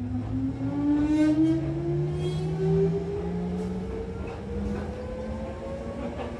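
A train's electric motor whines, rising steadily in pitch as it speeds up.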